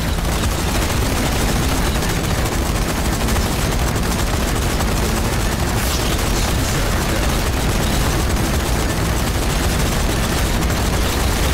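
A heavy gun fires in rapid, continuous bursts.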